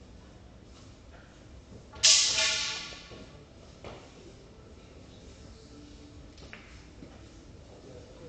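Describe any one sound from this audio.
Footsteps shuffle softly on a hard floor.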